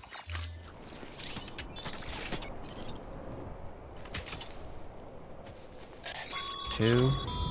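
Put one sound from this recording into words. Footsteps tread steadily through grass.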